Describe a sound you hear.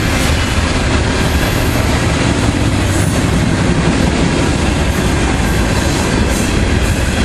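A long freight train rumbles past close by, its wheels clattering steadily on the rails.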